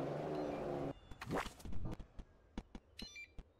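Short clicks and blips of a game sound out.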